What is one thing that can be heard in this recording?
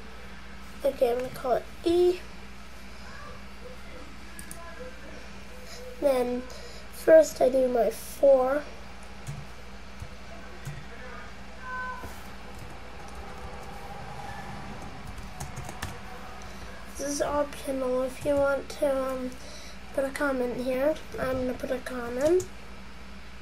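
A young boy talks in short bursts close to the microphone.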